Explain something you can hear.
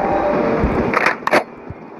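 Sharp rifle shots crack twice in quick succession.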